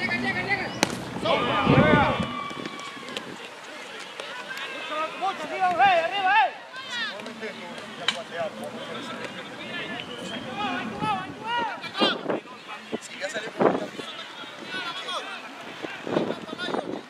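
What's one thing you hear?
Several men call out and chatter across an open outdoor field.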